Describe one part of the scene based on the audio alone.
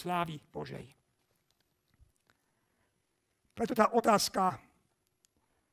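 A middle-aged man speaks into a microphone in a slow, measured voice, with pauses between phrases.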